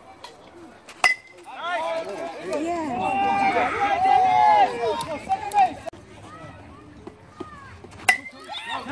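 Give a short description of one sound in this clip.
A metal bat cracks sharply against a ball.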